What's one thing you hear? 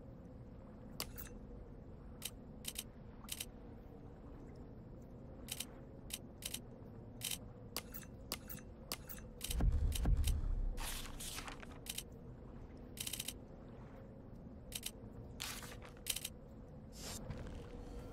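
Menu cursor clicks tick sharply, one after another.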